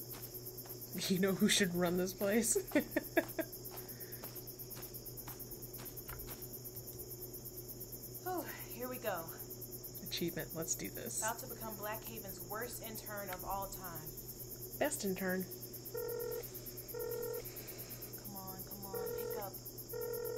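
A woman talks with animation into a close microphone.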